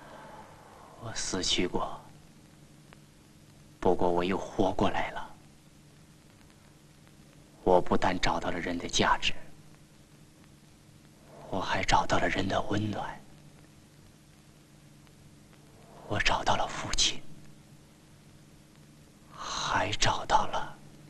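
A man speaks softly and slowly in short phrases, with long pauses.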